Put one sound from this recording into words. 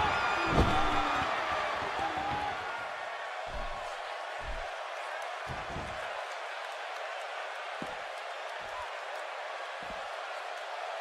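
A large crowd cheers and murmurs steadily.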